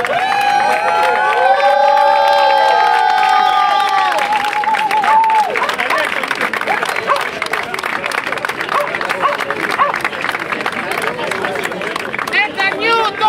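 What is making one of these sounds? People in a crowd clap their hands in rhythm.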